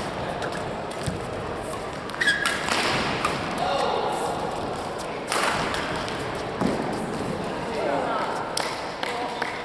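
Shuttlecocks crack off rackets in quick rallies.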